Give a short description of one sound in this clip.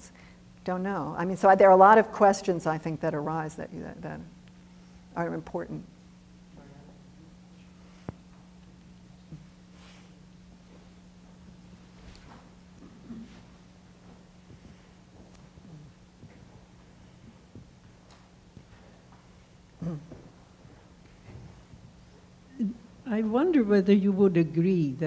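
A woman speaks into a microphone in a large echoing hall, pausing between phrases.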